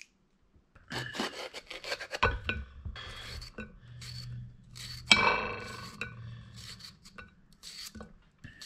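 A knife slices through a bell pepper on a plate.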